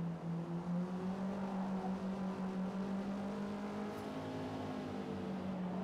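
A racing car engine hums steadily at high speed.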